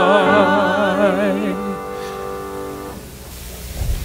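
A man and a woman sing together through microphones.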